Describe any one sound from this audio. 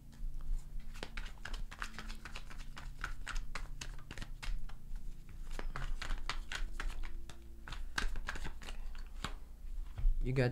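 Playing cards rustle and tap softly as they are handled.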